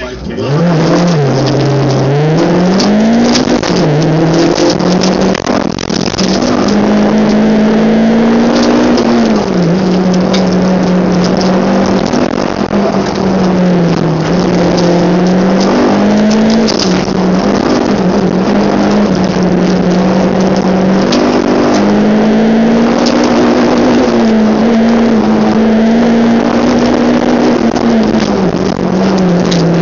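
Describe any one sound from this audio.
A car engine roars loudly from inside, rising and falling in pitch as the driver speeds up and slows down.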